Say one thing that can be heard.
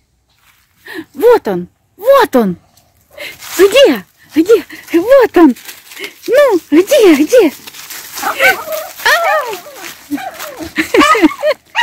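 A small dog yelps and barks repeatedly, close by.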